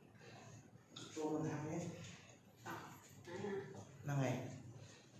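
A woman speaks a few short phrases nearby.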